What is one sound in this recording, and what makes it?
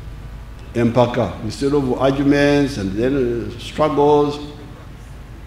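An elderly man speaks slowly and firmly through a microphone and loudspeakers, outdoors.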